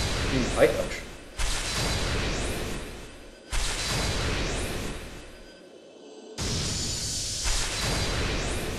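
A bright magical whoosh swells with each reveal and then fades away.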